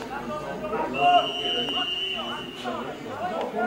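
A referee's whistle blows one long, steady blast.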